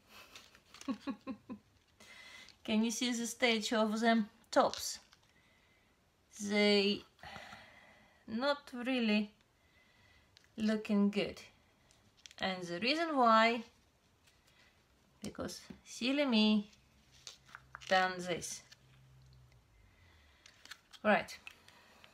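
A thin plastic cup crinkles as it is handled.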